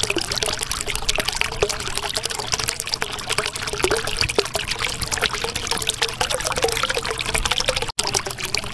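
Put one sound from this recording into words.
Air bubbles gurgle and pop steadily underwater.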